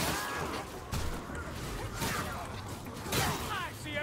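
A blade swings and strikes with sharp hits.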